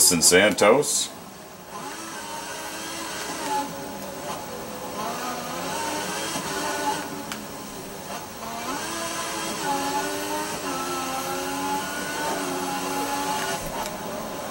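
A racing car engine whines loudly and revs up and down as it shifts gears.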